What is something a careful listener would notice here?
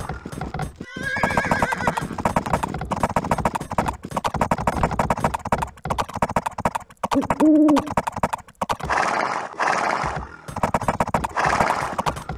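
Many horses' hooves clatter in a fast gallop.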